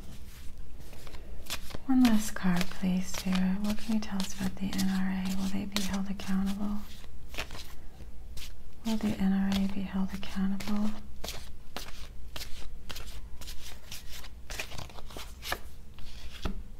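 Playing cards riffle and shuffle with quick crisp clicks.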